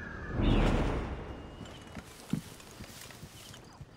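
A fire crackles close by.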